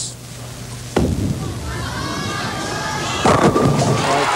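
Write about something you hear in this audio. A bowling ball rolls down a lane.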